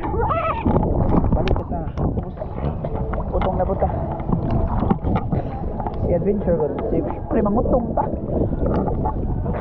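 A young man talks with animation close to the microphone, outdoors on the water.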